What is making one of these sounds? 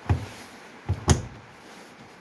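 A washing machine door clicks shut.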